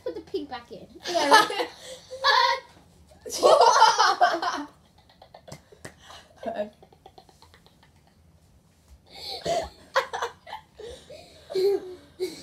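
Young girls laugh loudly together close by.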